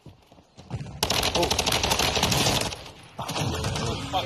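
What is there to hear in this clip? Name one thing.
Gunfire crackles rapidly in a game.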